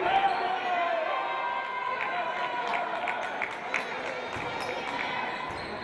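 A ball bounces on the floor.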